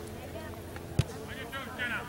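A soccer ball is kicked with a thump.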